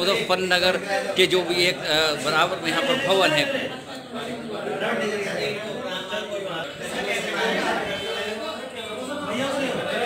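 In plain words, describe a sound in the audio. Several men talk among themselves in the background.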